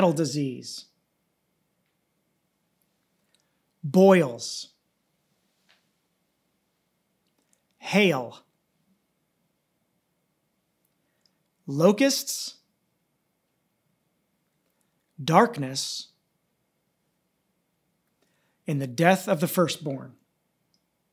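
A man reads out single words slowly and clearly into a close microphone, with long silent pauses between them.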